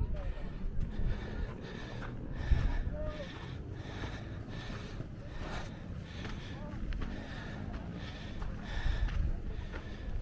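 Horses walk with hooves thudding on dry dirt.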